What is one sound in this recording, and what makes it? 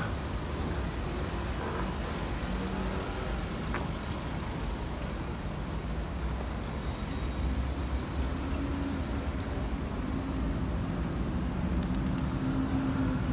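Fountain water splashes and gurgles steadily.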